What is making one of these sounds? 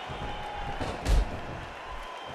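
A heavy thud lands with a dull boom.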